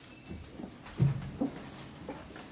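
Train doors slide open with a thump.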